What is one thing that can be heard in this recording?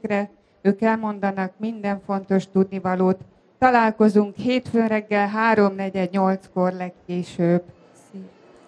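A woman speaks over a loudspeaker to an audience outdoors.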